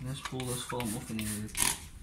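A spray bottle squirts water onto glass.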